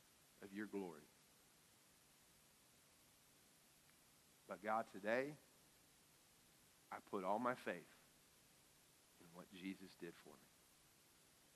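A middle-aged man speaks calmly through a microphone in short, spaced phrases.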